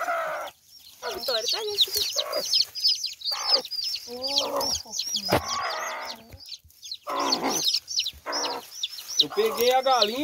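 Chicks peep shrilly and rapidly.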